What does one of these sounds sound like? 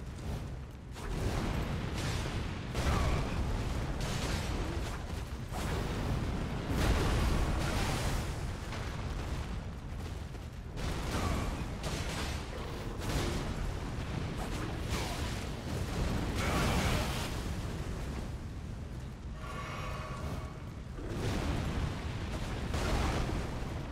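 Heavy blade strikes crash one after another.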